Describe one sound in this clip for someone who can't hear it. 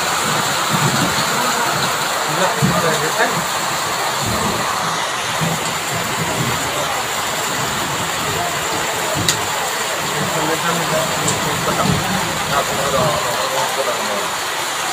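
Heavy rain falls steadily on a tin roof.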